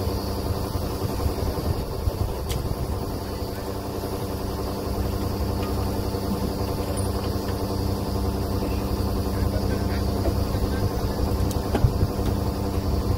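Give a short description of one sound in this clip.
A drilling rig's diesel engine runs with a steady loud drone.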